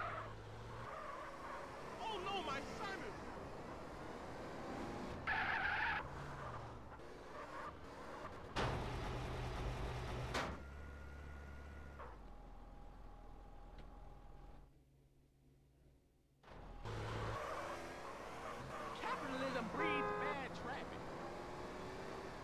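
A car engine revs as a car drives along.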